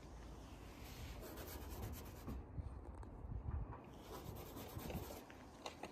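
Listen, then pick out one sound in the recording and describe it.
A fingertip rubs across frost on a car bonnet.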